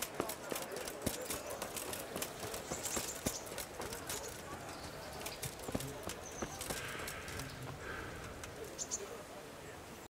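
Footsteps crunch steadily on a dirt path.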